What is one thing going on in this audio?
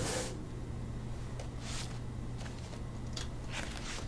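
A paper folder rustles as a hand pulls it from a box.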